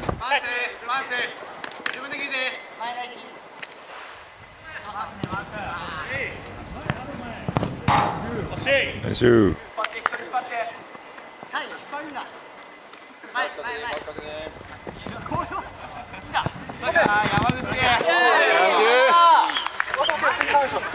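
Young men shout and call out to each other across an open outdoor court.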